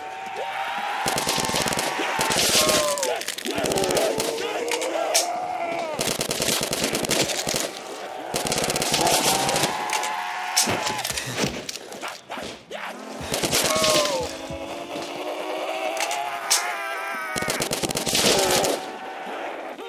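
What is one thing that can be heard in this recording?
A rifle fires rapid bursts of shots.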